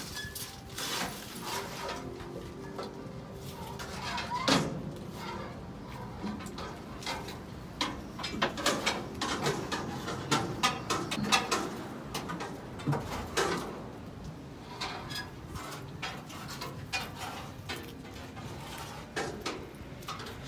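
A garbage truck engine idles and hums steadily nearby.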